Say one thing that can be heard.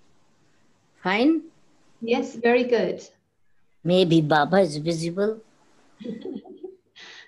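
An elderly woman speaks with animation over an online call.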